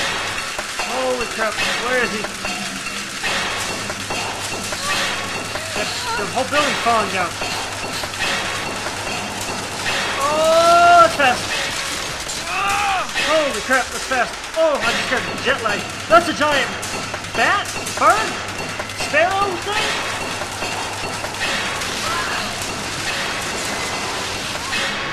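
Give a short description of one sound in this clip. A metal hook grinds and rattles along a rail at speed.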